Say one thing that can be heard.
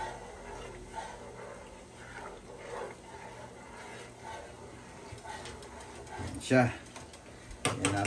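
A spoon stirs and clinks against a metal pot.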